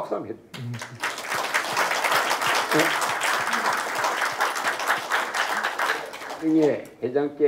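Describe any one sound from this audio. An audience claps and applauds.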